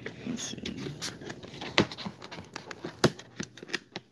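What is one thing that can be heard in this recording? A finger taps on a cardboard box.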